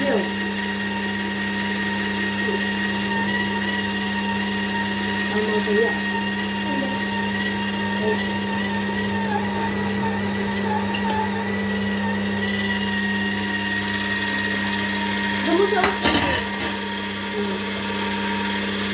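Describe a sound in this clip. A juicer motor hums steadily while its screw grinds fruit.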